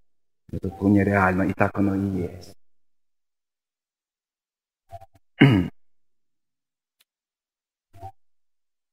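A middle-aged man speaks calmly through a microphone, with long pauses.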